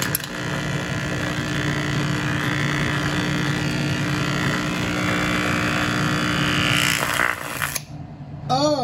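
A small loudspeaker plays a loud, dense buzzing hiss that suddenly cuts off.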